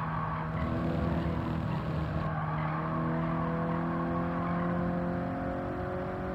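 A car engine roars steadily, its pitch slowly rising as it speeds up.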